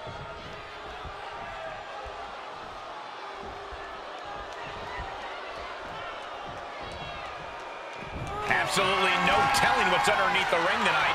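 A large crowd cheers and murmurs in a big arena.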